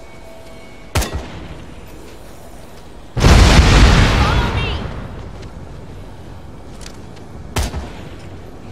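A gun fires single shots.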